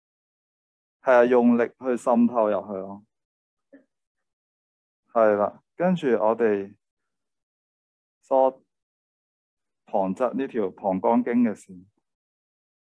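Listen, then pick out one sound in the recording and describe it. A man speaks calmly through a microphone, explaining in short bursts.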